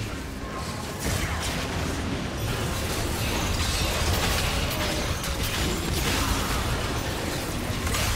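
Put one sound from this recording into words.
Magic blasts whoosh and crackle in a busy fight.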